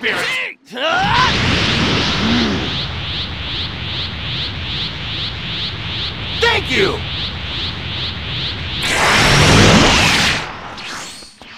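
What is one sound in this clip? A powerful energy aura roars steadily, with a fast pulsing hum.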